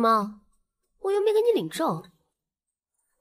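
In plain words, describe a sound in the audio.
A young woman answers in a lilting voice up close.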